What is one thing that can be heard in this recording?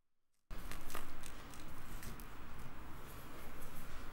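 Slime squelches and stretches under fingers.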